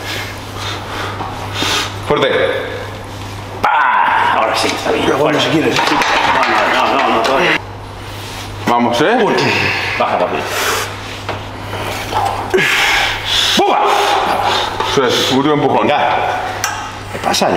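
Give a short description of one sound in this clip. A young man grunts with effort.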